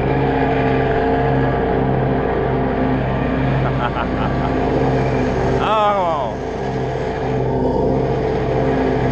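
A lawn mower engine drones steadily up close.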